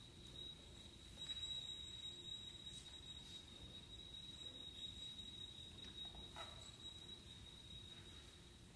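A string quartet plays softly in an echoing hall.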